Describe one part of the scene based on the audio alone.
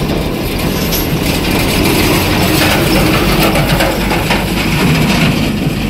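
Heavy tyres crunch over a dirt track.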